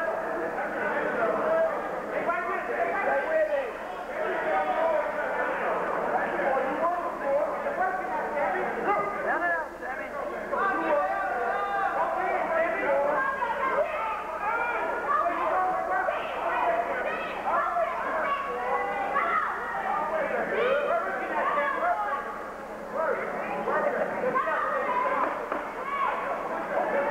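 A crowd of spectators shouts and cheers around a boxing ring.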